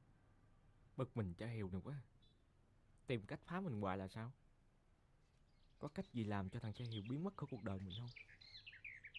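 A young man speaks softly and sadly, close by.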